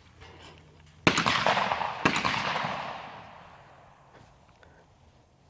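Two loud shotgun blasts ring out outdoors, each rolling away in a long echo.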